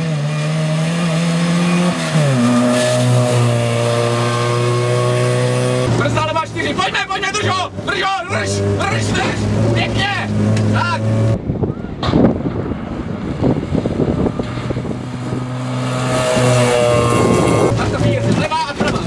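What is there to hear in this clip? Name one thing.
A rally car engine roars and revs hard, shifting through gears.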